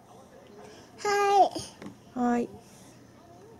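A little girl speaks loudly up close.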